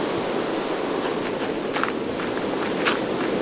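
A pickaxe chips at stone in quick, sharp knocks.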